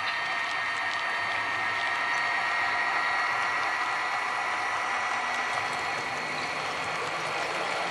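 Small model train wheels roll and click over metal rails.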